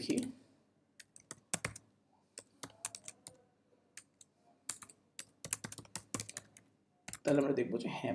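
Keys clack on a keyboard in quick, uneven taps.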